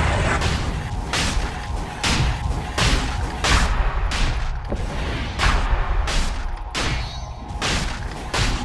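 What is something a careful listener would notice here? Magic spell blasts whoosh and crackle in quick, repeated bursts.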